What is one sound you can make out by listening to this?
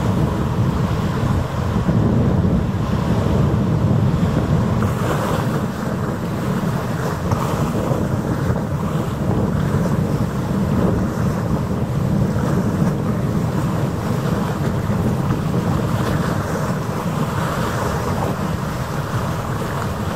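Choppy water splashes and laps.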